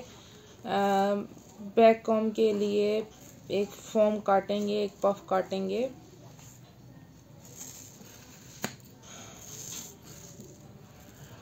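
Scissors snip through soft foam.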